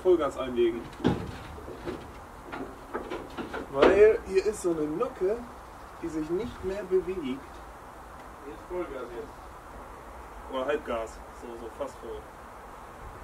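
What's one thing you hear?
A man speaks casually outdoors.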